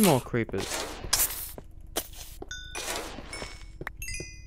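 A sword strikes a creature with sharp hits.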